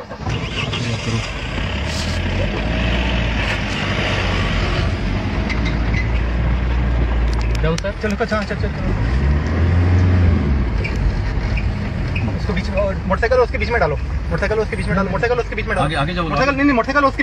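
A car engine rumbles up close.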